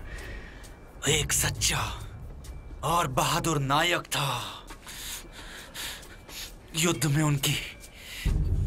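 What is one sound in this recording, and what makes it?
A man speaks in a low, firm voice, close by.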